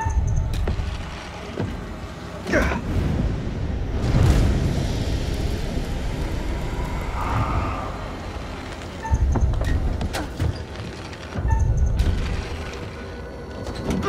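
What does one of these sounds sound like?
Feet thud as a young man climbs onto a crate.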